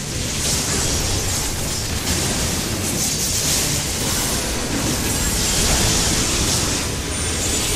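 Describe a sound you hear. Magic spells burst and whoosh in a fight.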